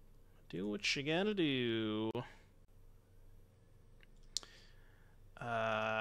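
A man speaks with animation, drawing out his words, close to a microphone.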